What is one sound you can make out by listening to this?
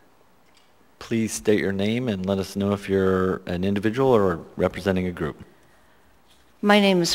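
A woman speaks calmly into a microphone, amplified in a large room.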